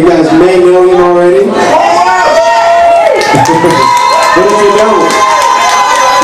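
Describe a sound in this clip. A man sings loudly into a microphone.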